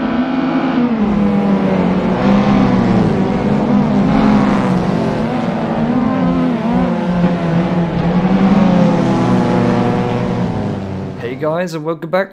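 Several racing car engines roar loudly as the cars speed past.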